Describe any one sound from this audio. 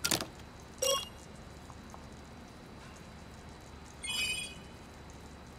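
An electronic terminal beeps.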